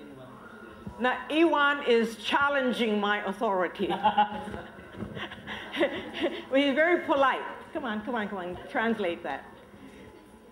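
An elderly woman talks with animation nearby.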